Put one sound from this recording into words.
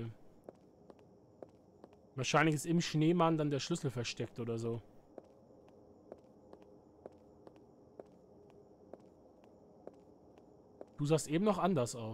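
Footsteps tap steadily on a hard path.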